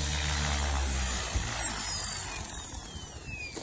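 A model helicopter's rotor winds down, its whine falling in pitch.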